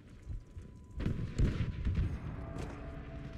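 Gunfire and explosions crack and boom.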